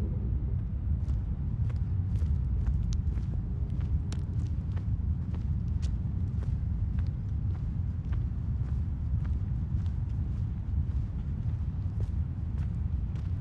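Footsteps tap on pavement outdoors.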